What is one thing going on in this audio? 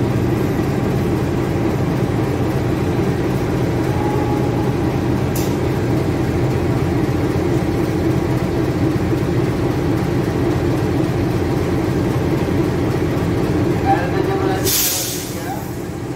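A diesel locomotive engine rumbles loudly and steadily close by.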